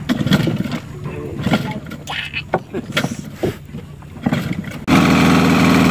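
A man yanks the starter cord of an outboard motor.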